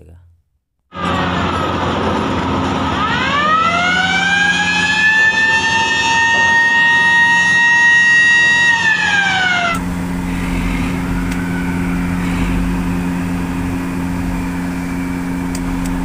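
Heavy machinery hums steadily.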